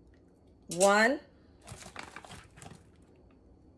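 Metal measuring spoons clink against a pot.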